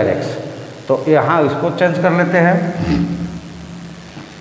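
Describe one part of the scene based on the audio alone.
A man speaks aloud in an echoing room.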